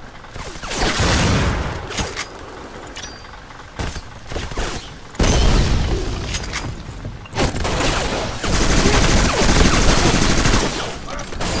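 A rifle fires loud, rapid bursts of gunshots.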